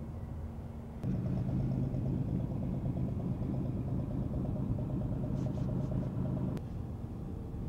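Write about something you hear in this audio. A car engine idles with a deep, throbbing rumble.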